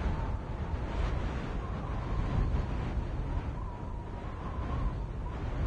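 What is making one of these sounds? Wind rushes and roars steadily.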